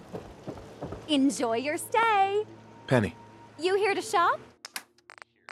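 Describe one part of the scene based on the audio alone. A woman speaks in a friendly voice, close by.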